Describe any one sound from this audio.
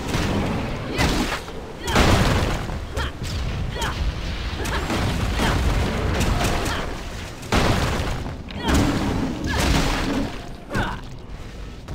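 Magic blasts and weapon strikes crash and boom in quick bursts.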